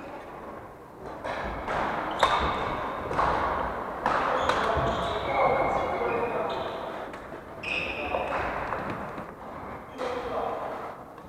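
Shoes squeak on a wooden floor.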